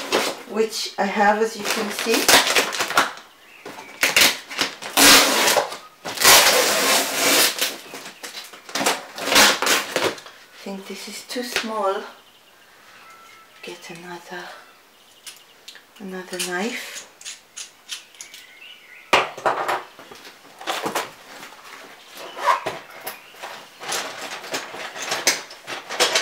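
Cardboard rustles and scrapes under handling.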